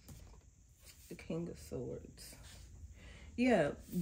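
A card slides and taps onto a table.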